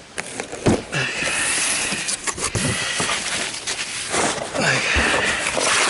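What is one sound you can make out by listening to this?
Paper packing rustles and crinkles as hands pull it from a cardboard box.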